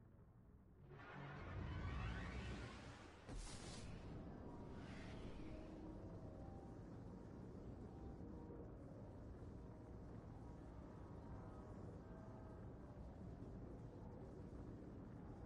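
A spaceship engine roars loudly and steadily.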